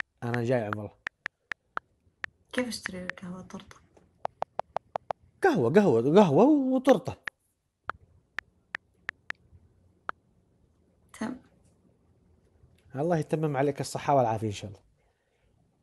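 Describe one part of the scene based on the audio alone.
A man speaks through a phone call.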